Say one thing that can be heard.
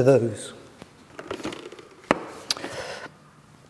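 Plastic parts of a model click and knock as they are lifted out.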